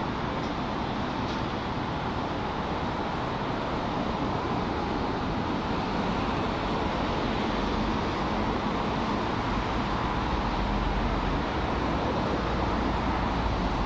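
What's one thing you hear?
Traffic rumbles steadily on a road nearby, outdoors.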